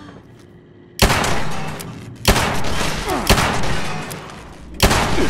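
Gunshots boom loudly, one after another.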